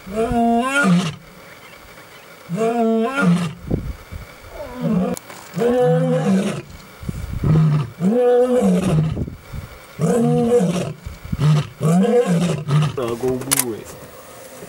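A lioness roars nearby in a series of deep, moaning grunts.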